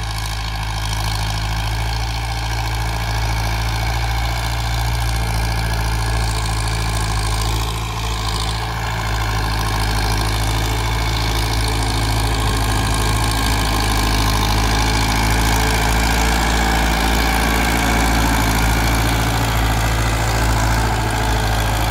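A plough churns and crumbles the soil.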